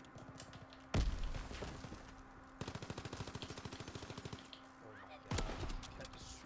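A sniper rifle fires in a video game with a loud crack.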